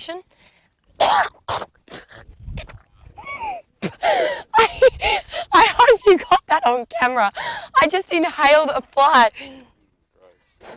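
A young woman laughs loudly into a microphone.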